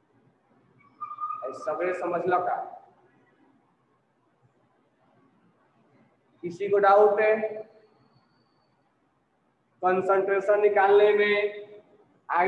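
A man lectures in short bursts.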